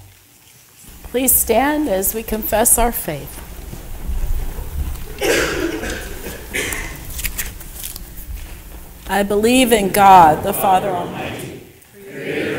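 A woman sings through a microphone in an echoing hall.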